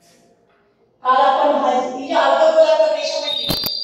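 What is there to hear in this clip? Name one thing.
A young woman speaks clearly and calmly through a close microphone.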